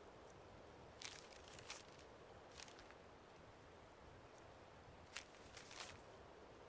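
A sheet of paper rustles as a note is opened and put away.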